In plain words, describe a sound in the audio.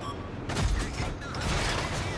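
A tank cannon fires with a heavy boom.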